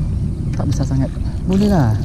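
A fishing lure splashes across the water surface.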